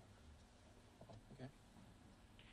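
A snooker ball knocks softly as it is set down on the cloth of a table.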